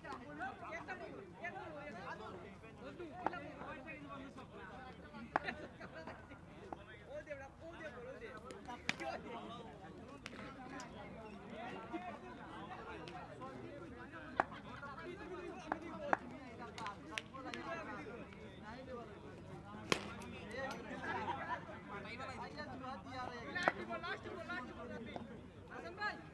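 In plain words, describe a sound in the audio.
A crowd of men chatters outdoors at night.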